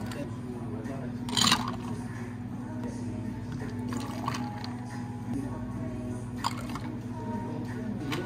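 Espresso pours into glass jars of ice.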